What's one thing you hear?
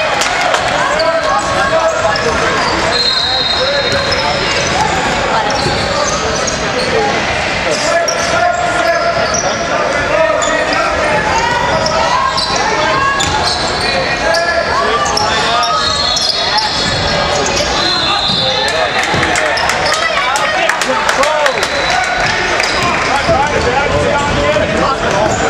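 Spectators chatter and cheer in the background.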